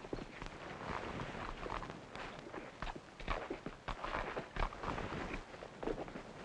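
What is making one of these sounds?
A man scrapes against rough bark as he climbs a rope up a tree.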